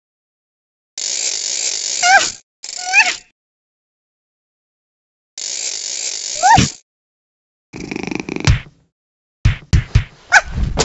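A cartoon cat purrs and meows in a high, playful voice.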